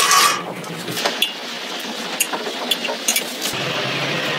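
A plastic hanger clicks onto a metal rack.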